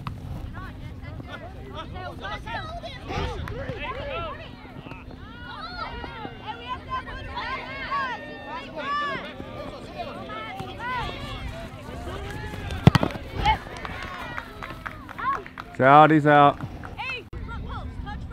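Adult spectators cheer and shout from the sideline.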